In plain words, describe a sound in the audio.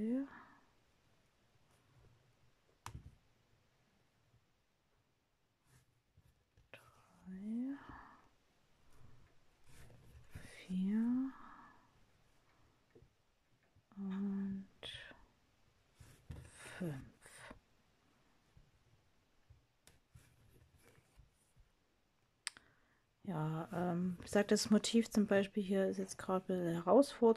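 Thread rasps softly as it is pulled through stiff canvas.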